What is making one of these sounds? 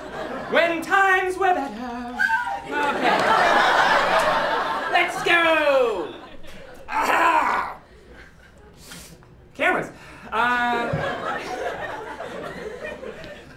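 A young man talks animatedly and shouts into a microphone on stage.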